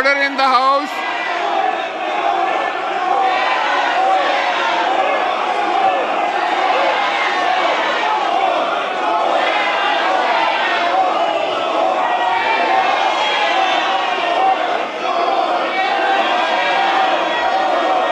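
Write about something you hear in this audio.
A crowd of men and women chatters loudly.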